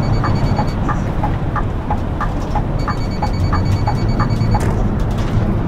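A bus turn signal ticks rapidly.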